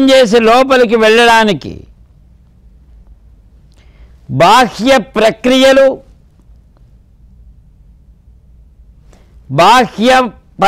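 An elderly man chants in a steady, sing-song voice, close to a microphone, in short phrases with pauses.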